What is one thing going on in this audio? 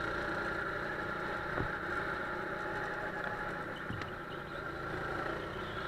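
A go-kart engine drones steadily at close range.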